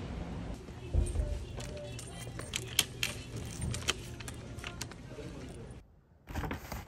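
A plastic basket rattles and clatters.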